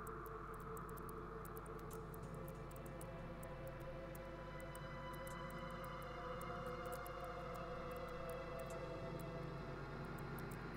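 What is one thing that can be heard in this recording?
Droning electronic music plays from a mixing desk, with steady tones and crackling clicks.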